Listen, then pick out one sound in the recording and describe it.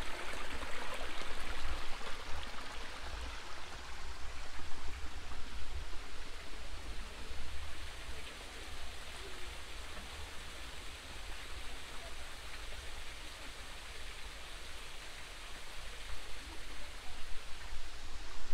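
Water splashes and trickles over stones close by.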